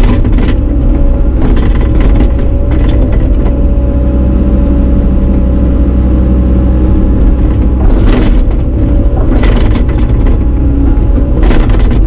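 A diesel engine rumbles steadily from inside an excavator cab.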